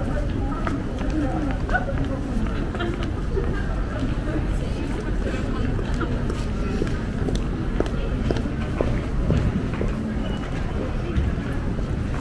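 Footsteps tap on paving stones outdoors.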